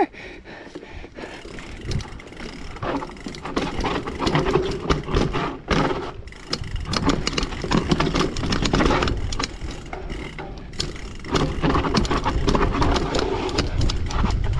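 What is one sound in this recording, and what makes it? Bicycle tyres rattle and crunch over rocky ground.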